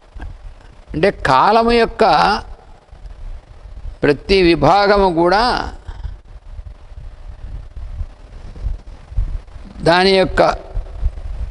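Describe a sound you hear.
An elderly man speaks slowly and calmly into a clip-on microphone, with long pauses.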